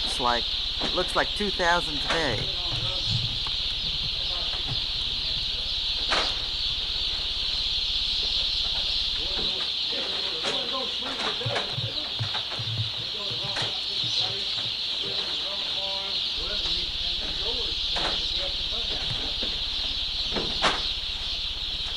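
Many chicks peep constantly in a loud, high chorus.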